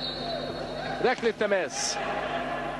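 Sneakers squeak on a hard floor in a large echoing hall.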